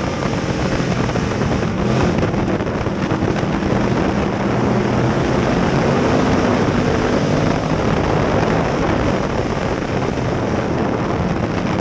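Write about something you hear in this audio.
A race car engine roars loudly and steadily up close.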